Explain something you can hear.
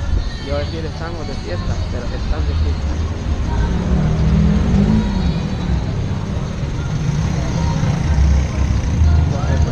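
Car engines hum nearby in slow traffic.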